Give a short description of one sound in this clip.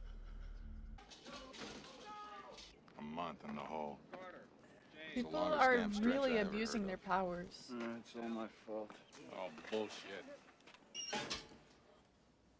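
Men's voices from a film talk in short lines.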